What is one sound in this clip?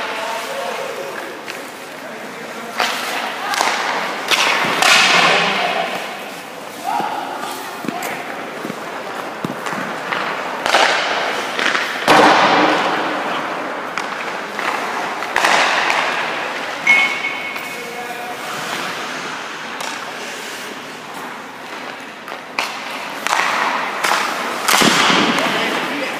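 Skate blades scrape and hiss on ice.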